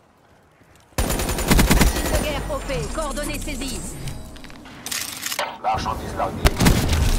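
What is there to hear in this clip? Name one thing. An automatic rifle fires loud rapid bursts.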